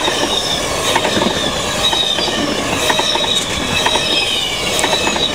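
A train rushes past close by, wheels clattering over the rails.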